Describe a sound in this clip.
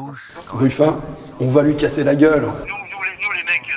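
A man speaks with animation to a group.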